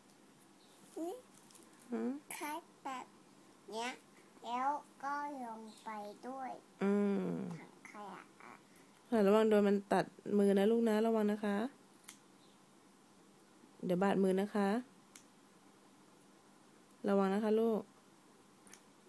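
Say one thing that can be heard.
A young girl talks close by in a high, lively voice.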